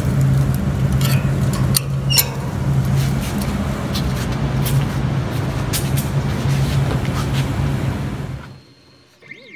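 Gas hisses and rushes loudly from an opened tank valve.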